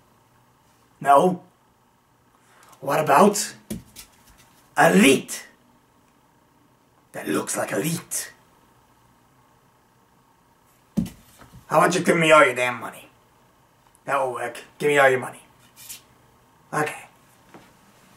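A young man speaks close up, with animation, in bursts and pauses.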